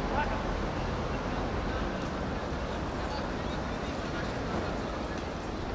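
Young men shout to each other across an open field, heard from a distance.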